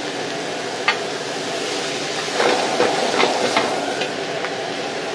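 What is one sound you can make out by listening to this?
A metal ladle scrapes and clanks against a wok.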